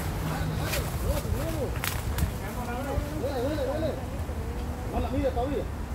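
A person wades and splashes through a river.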